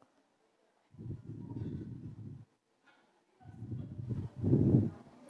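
Hands rub and pat a thick quilt with a soft, muffled brushing.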